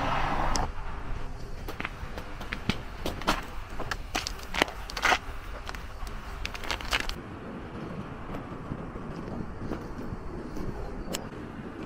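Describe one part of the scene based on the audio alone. Footsteps crunch on snowy steps and a path outdoors.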